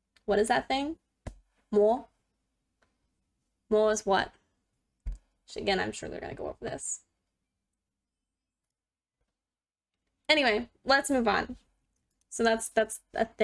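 A woman speaks calmly and clearly into a close microphone, pausing between phrases.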